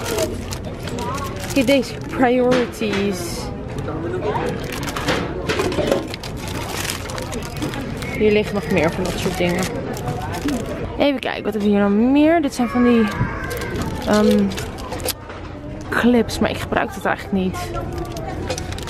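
Plastic packages rustle and crinkle as a hand handles them.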